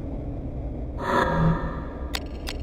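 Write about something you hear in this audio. A menu chime sounds.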